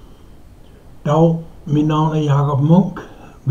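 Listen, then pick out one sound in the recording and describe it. An elderly man speaks calmly, close to the microphone.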